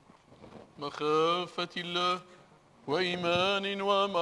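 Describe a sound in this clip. A man sings a slow chant that echoes through a large hall.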